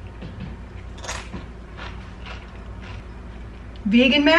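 A crisp chip crunches as someone chews.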